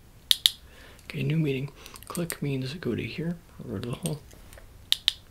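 A young man speaks softly, close to the microphone.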